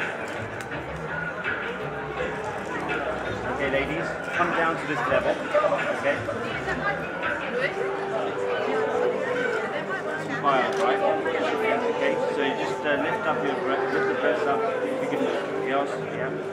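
Several women talk and chatter nearby.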